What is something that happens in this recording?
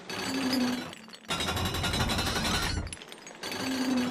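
Hands scrape and grip on stone.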